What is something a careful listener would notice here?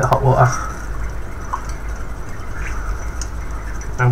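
A spoon clinks against a mug.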